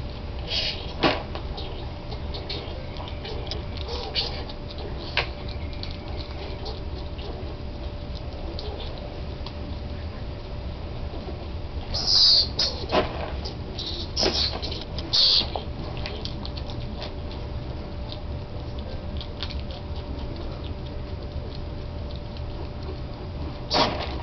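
A skunk laps and munches food from a bowl.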